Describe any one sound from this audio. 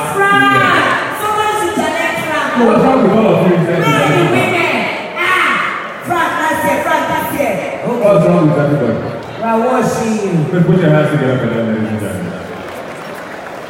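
A man speaks with animation through loudspeakers in a large echoing hall.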